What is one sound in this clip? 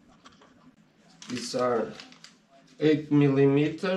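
Plastic bags rustle as they are handled.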